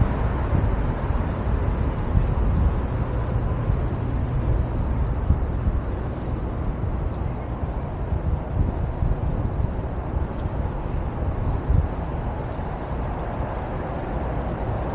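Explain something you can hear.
Wind buffets the microphone steadily outdoors.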